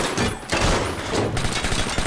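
Bullets strike metal with sharp cracks.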